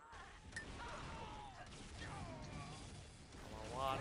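Game guns fire with sharp bangs.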